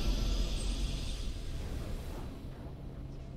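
A bright game victory jingle rings out and fades away.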